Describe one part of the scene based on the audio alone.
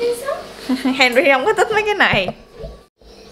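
A teenage girl talks playfully up close.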